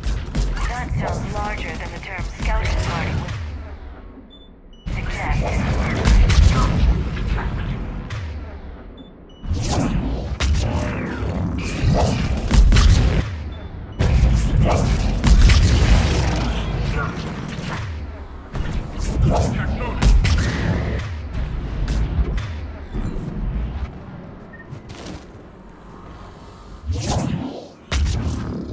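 Gunfire and energy blasts crack and boom in a fight.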